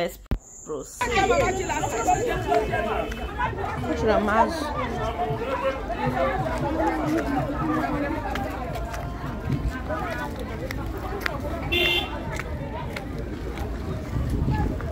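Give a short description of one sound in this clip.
Many people chatter all around outdoors.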